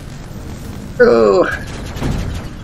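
An energy shield pulses with a whooshing sweep.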